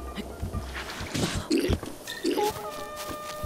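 Sharp metallic hits ring out in a fight.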